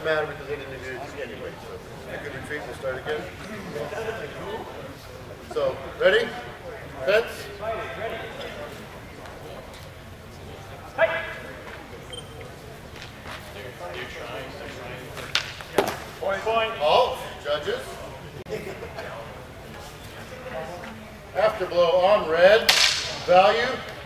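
A man shouts calls to the fencers.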